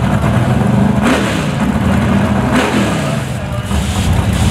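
A race car engine revs sharply and rises in pitch.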